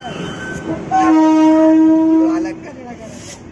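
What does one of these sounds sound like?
A train horn blares loudly close by.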